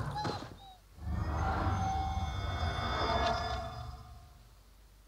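A magical shimmer hums and rings.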